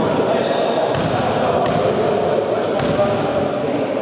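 A basketball bounces on a wooden floor in a large echoing hall.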